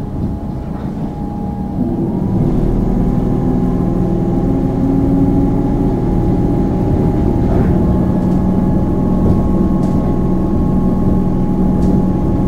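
A train rumbles steadily along the tracks, its motor humming and growing louder.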